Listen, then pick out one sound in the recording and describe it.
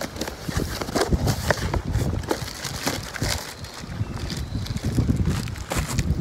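A paper sheet rustles as it is pulled out of a box.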